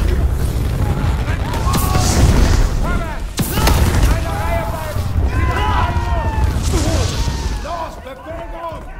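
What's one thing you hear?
A flamethrower roars with a heavy, rushing blast.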